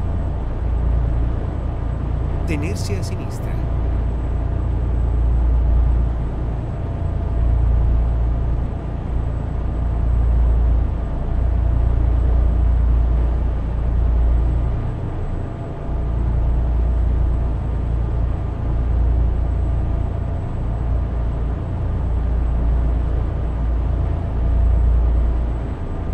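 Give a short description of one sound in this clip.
Tyres roll steadily on the road.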